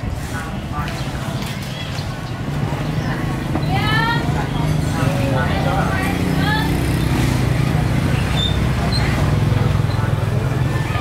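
Women chat nearby.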